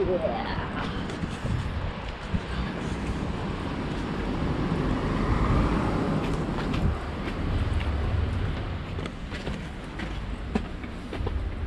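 Footsteps scuff and tap on stone steps outdoors.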